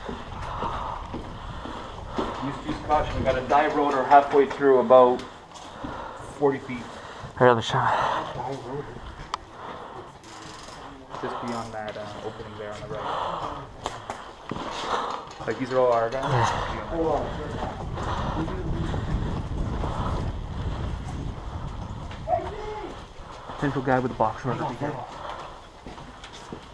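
Footsteps shuffle on a hard floor in an echoing corridor.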